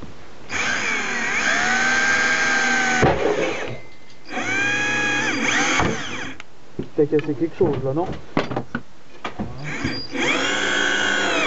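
A cordless drill whirs in short bursts, its motor whining up and down in pitch.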